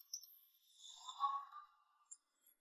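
Tea pours into a glass pot.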